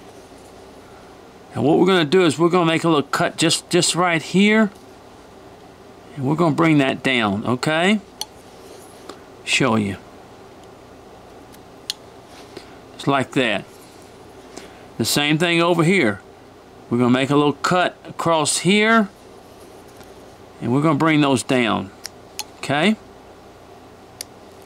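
A knife shaves and scrapes wood in small strokes.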